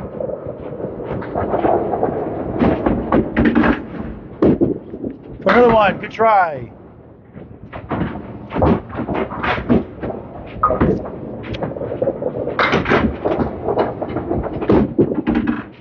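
A bowling ball rolls down a wooden lane with a low rumble.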